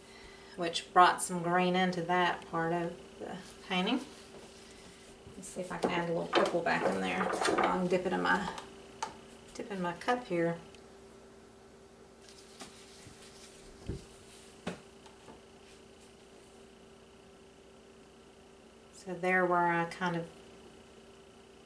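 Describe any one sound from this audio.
A woman talks calmly close by, in short bursts with pauses.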